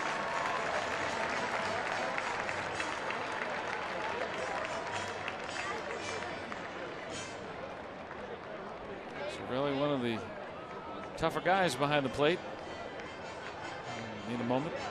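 A large stadium crowd murmurs and cheers in the open air.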